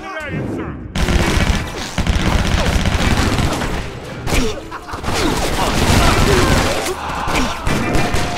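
Guns fire in rapid bursts of loud shots.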